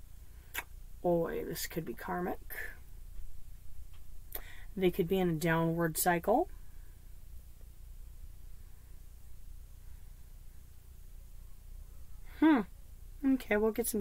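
A woman speaks calmly and slowly, close to a microphone, with long pauses.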